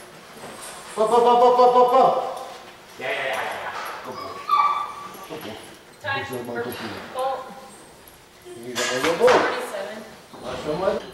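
A man loudly calls and urges on a dog with excitement.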